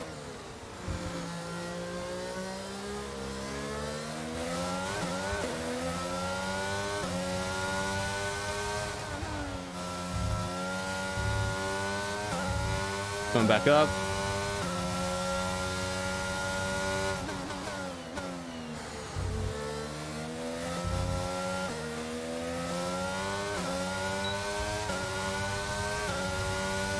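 A racing car engine revs high and drops with each gear change.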